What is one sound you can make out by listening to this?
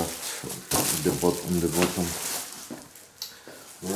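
A plastic wrapping crinkles and rustles as it is handled.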